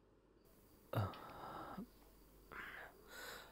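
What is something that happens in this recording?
A man speaks quietly and sadly.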